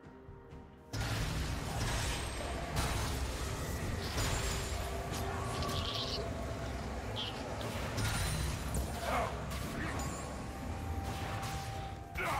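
Video game spell effects whoosh and clash during a fight.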